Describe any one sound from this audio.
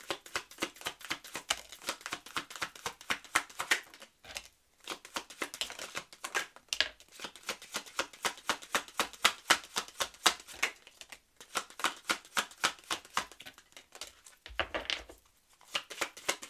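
Playing cards tap and slap softly onto a hard table.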